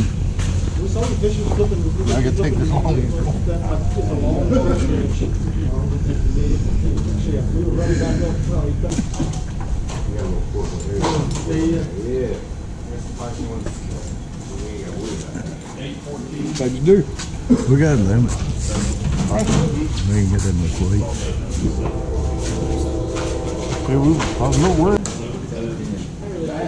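Several men talk and chatter nearby in a crowd.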